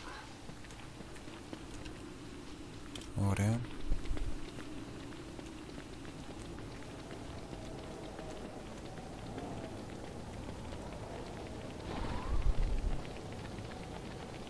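Footsteps patter softly across the ground.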